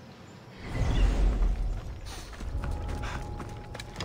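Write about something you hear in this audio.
Footsteps crunch on gravel as a warrior runs.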